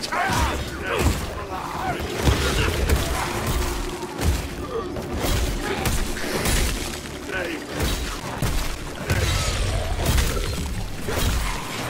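Weapons strike and slash in rapid, heavy blows.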